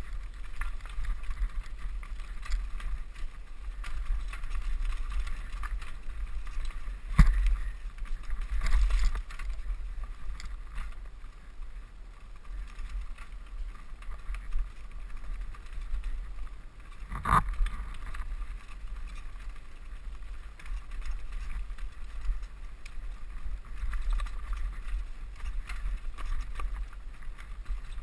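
Wind rumbles steadily against a microphone.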